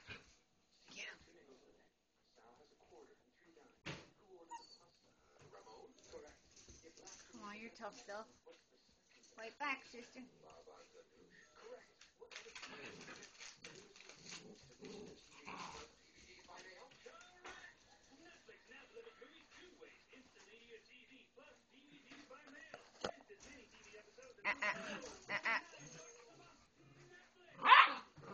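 Puppies growl and whine as they play-fight up close.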